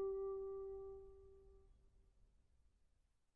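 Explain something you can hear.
A bamboo flute holds a single long note that slowly fades away.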